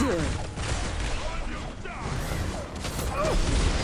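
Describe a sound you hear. Magical spell effects whoosh and crackle in a video game.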